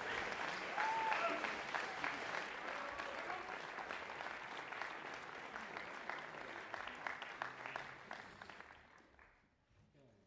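A big band of saxophones, trumpets and trombones plays loudly in a large hall, then stops.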